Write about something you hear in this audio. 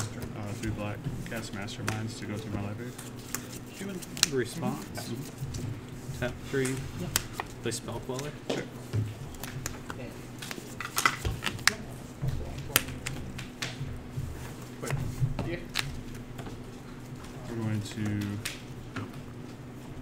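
Playing cards are shuffled and riffled in hands.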